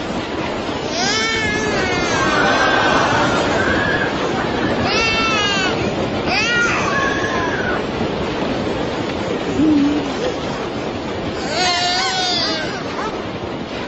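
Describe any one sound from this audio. A baby wails and cries loudly.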